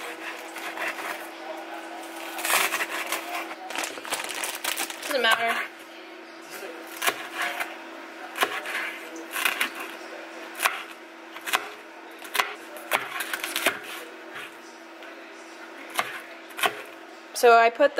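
A knife chops on a cutting board with quick knocks.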